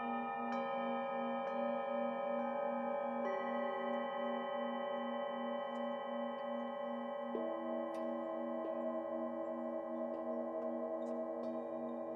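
Singing bowls are struck softly now and then, each strike adding a new ringing tone.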